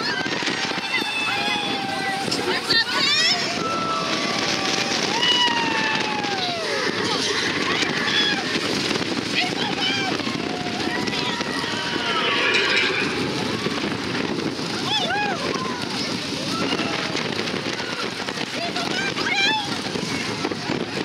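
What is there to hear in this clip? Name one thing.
Riders scream and shriek with excitement.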